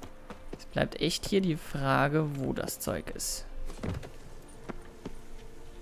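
Boots and hands knock against wood while climbing.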